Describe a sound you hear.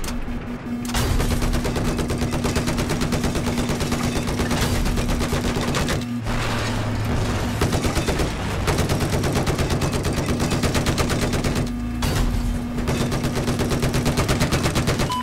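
A heavy machine gun fires in rapid, steady bursts.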